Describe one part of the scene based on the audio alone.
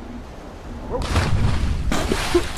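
Water splashes loudly as something plunges in.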